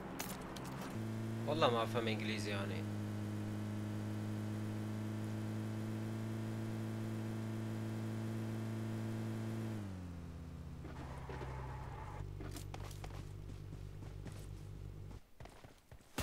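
A car engine hums steadily and then drops lower.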